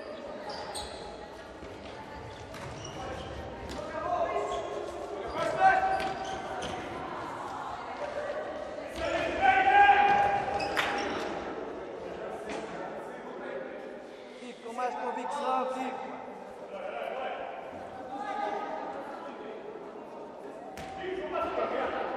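A ball is kicked hard in a large echoing hall.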